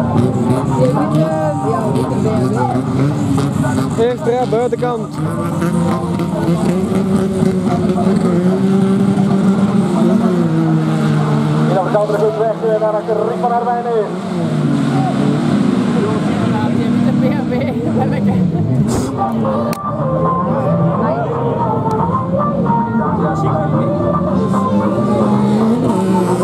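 Racing car engines roar and rev loudly in the distance outdoors, rising and falling in pitch.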